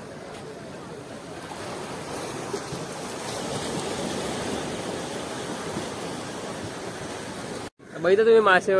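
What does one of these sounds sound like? Small waves wash onto a sandy shore.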